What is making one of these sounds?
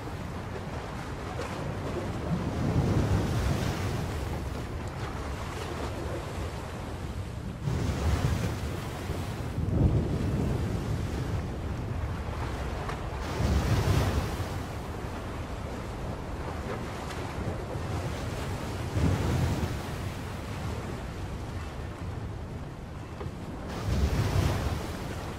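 Rough sea waves surge and crash in heavy swells.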